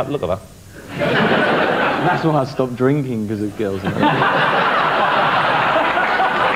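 An audience laughs and cheers loudly.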